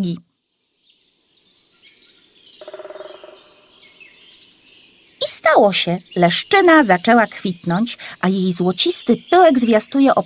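Small birds chirp and twitter.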